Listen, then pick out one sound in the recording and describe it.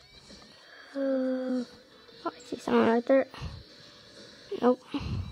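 Electronic game sound effects beep from a small tablet speaker.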